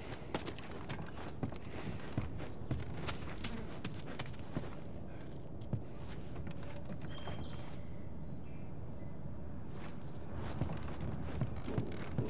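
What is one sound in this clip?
Footsteps crunch over debris on a floor.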